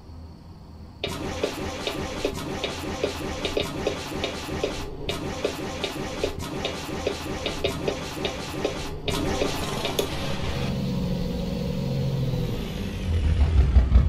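A diesel truck engine idles with a steady rhythmic clatter.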